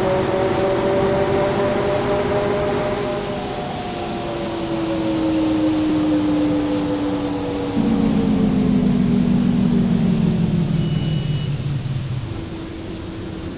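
A bus engine hums steadily and its pitch slowly falls as the bus slows down.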